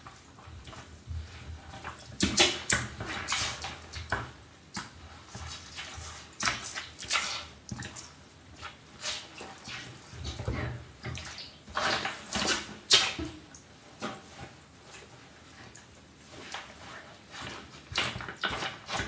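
Boots thud and scrape on a hard floor.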